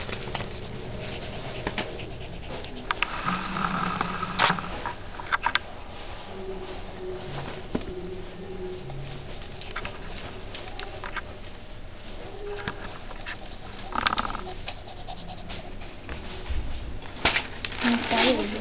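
Paper rustles and crinkles as a puppy tugs at it.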